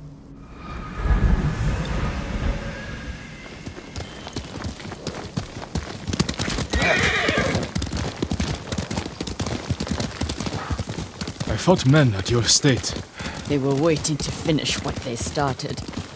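Horses' hooves clop steadily on a dirt trail.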